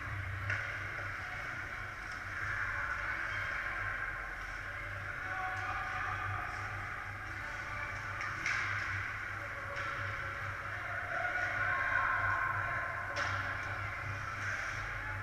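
Skates scrape and hiss across ice in a large echoing rink.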